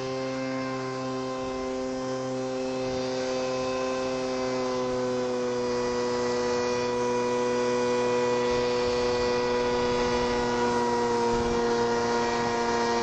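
A paramotor engine drones steadily overhead, its pitch rising slightly as it comes closer.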